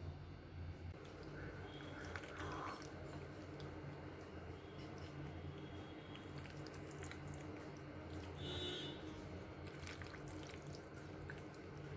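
A spoon scrapes and clinks against a glass bowl while stirring pasta.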